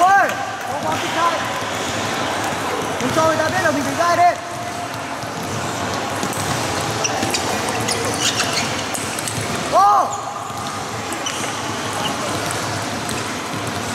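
A table tennis ball clicks back and forth off paddles and the table in a large echoing hall.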